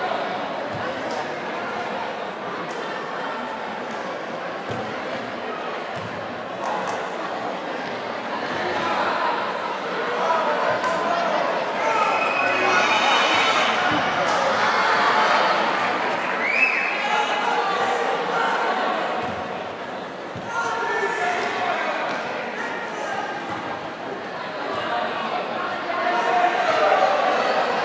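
A large crowd cheers and chants in an echoing indoor hall.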